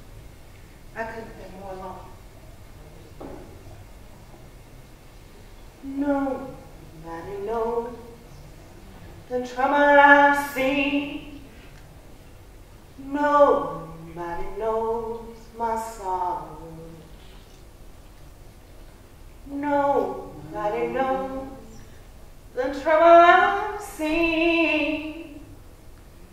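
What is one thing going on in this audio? A young woman sings slowly in separate phrases, with pauses between them.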